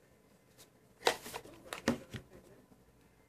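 A phone is set down on a hard surface with a knock.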